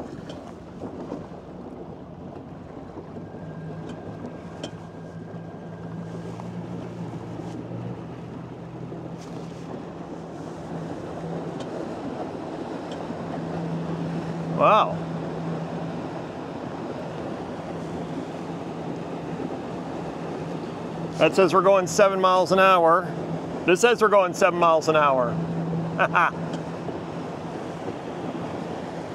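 Water splashes and rushes against a boat's hull.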